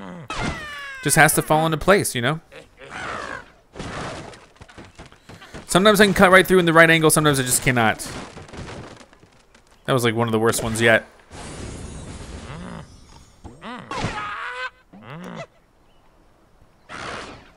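A cartoon bird squawks as it is flung through the air.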